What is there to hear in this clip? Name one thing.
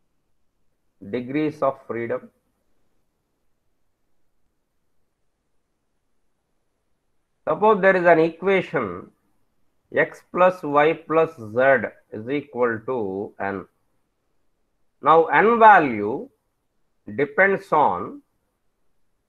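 A man speaks calmly into a close microphone, explaining in short bursts with pauses.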